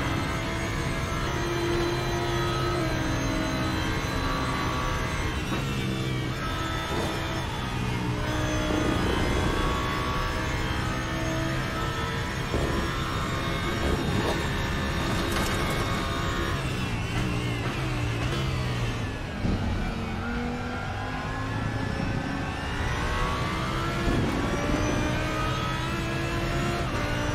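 A race car engine roars steadily, rising and falling in pitch as the gears shift.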